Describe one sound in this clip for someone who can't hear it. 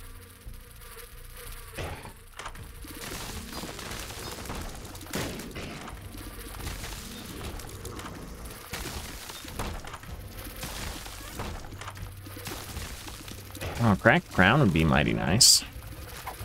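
Video game sound effects of shooting and bursts play busily.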